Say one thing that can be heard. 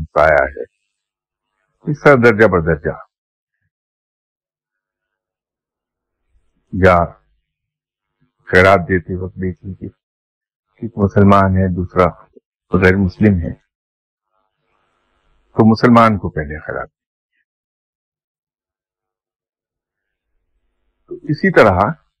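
An older man recites slowly and with feeling, close to a microphone, with long pauses.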